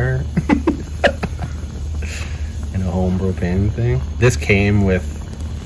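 A gas fire roars and hisses steadily.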